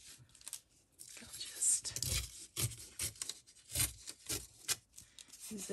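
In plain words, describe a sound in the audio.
Paper rips as a strip is torn along a ruler edge.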